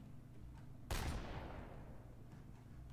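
A gunshot rings out and echoes away.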